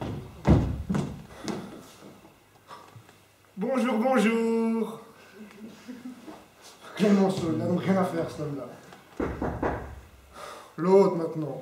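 A man speaks out theatrically in a large echoing hall.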